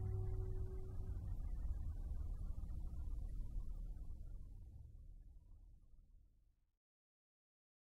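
A marimba plays soft rolling notes in an echoing hall and fades away.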